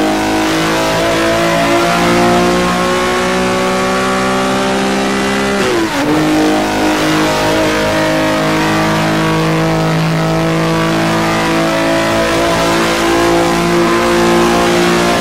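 A racing car engine roars loudly and steadily rises in pitch.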